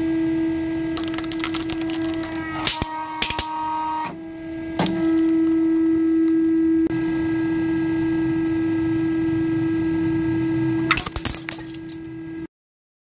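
A plastic toy cracks and crunches as a hydraulic press crushes it.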